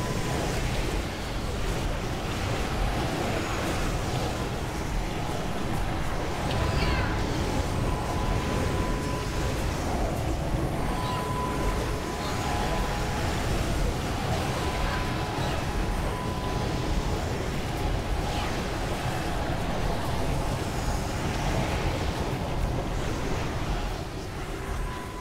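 Spell effects whoosh and crackle in a busy battle.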